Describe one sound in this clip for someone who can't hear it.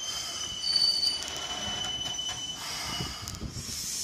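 Train brakes squeal high and shrill.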